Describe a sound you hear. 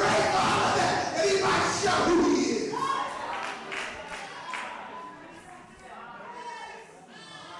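A man preaches with passion through a microphone and loudspeakers in an echoing hall.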